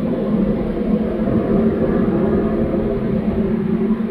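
A large truck rumbles close by.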